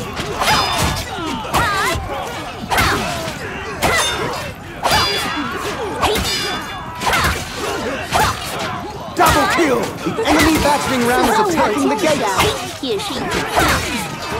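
Soldiers shout and yell in a crowded fight.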